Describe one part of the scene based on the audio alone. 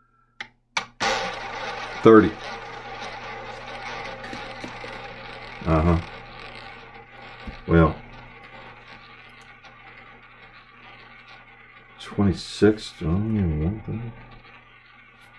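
A roulette ball whirs around a spinning wheel, slowly fading.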